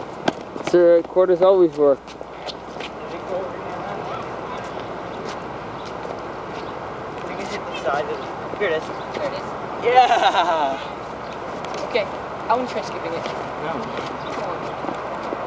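Boys talk outdoors nearby.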